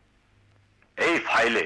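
A woman speaks, close by.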